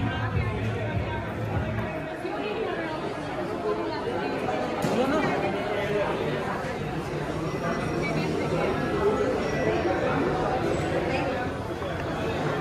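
Several people talk in the background of a busy indoor space.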